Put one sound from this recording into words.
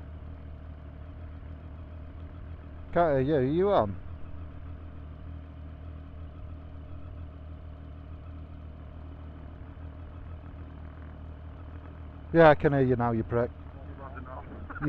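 A motorcycle engine idles with a low, steady rumble.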